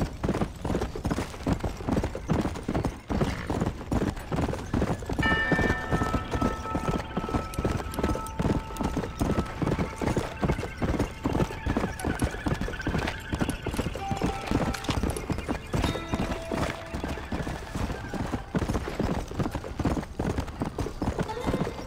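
Horse hooves gallop rapidly on a dirt trail.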